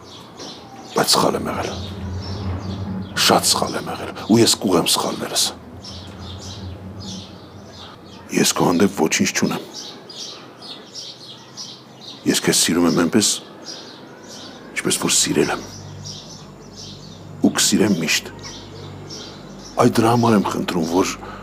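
A middle-aged man talks nearby in an upset, pleading tone.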